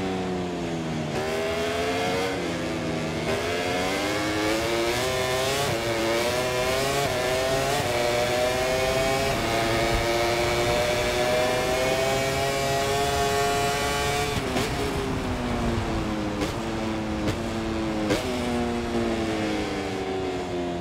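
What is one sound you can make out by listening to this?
A motorcycle engine roars loudly, revving up through the gears and dropping in pitch at each gear change.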